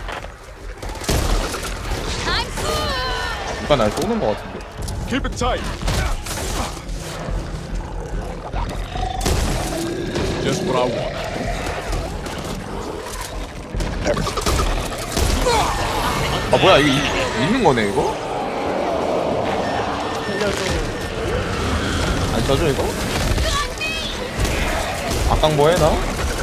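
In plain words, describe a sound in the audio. Shotguns fire in loud, booming blasts.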